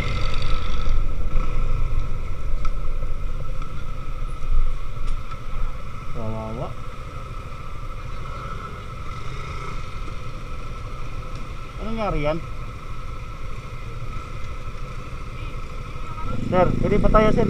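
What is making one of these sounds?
Motorcycle engines idle and rumble nearby on a busy road.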